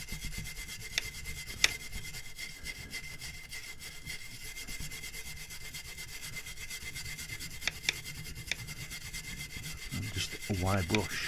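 Metal parts click and clink against each other.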